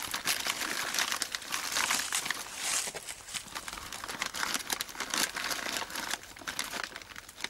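Water trickles from a hose into a bucket.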